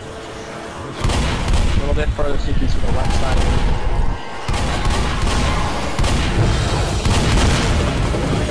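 Shotgun blasts boom repeatedly, loud and heavy.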